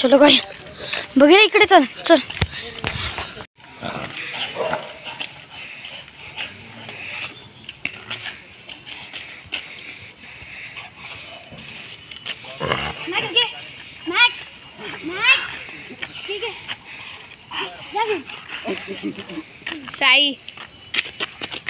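A dog whines and yelps in high, sliding cries.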